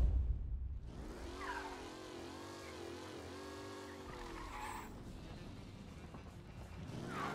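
A car engine hums and revs as the car drives off.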